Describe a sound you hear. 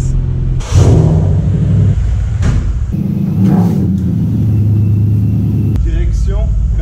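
A V8 car engine revs with a deep exhaust roar.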